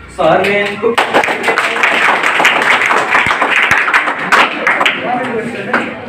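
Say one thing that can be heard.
A group of young people claps and cheers.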